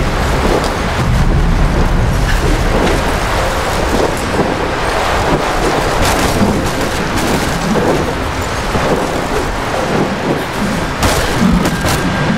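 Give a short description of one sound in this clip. Wooden planks crack and clatter as they break apart.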